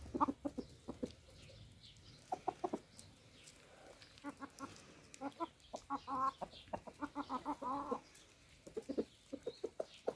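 Chickens peck at food on the ground.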